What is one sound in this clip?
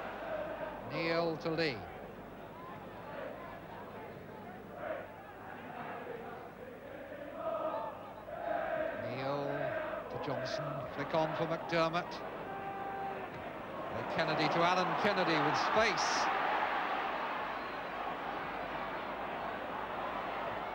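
A large stadium crowd murmurs and then swells into a loud roar.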